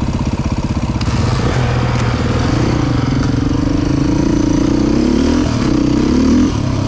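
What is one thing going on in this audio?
A dirt bike engine revs up and down as the bike rides off along a trail.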